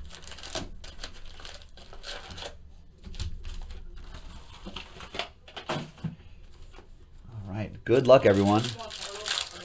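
Foil card packs rustle and clack as hands handle them.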